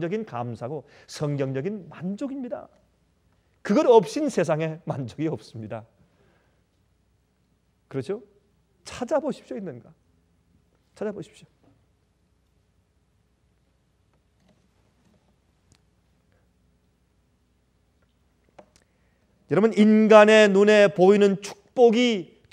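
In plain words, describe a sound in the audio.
A middle-aged man speaks with animation into a microphone, pausing often.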